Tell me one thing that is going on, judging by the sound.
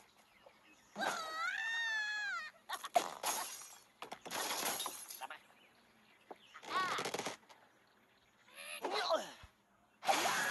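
A cartoon bird squawks as it is flung through the air.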